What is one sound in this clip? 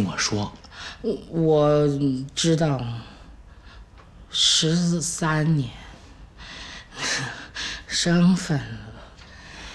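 A woman answers wearily, close by.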